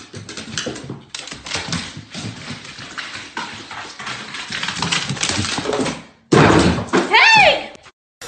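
A dog's paws patter on wooden stairs.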